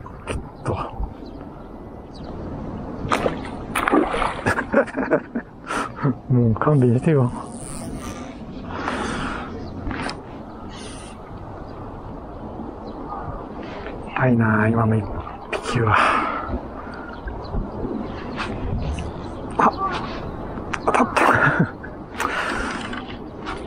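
Small ripples lap softly on shallow water.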